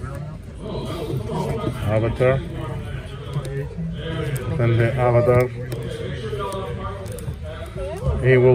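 Plastic-wrapped record sleeves rustle and clack as a hand flips through them.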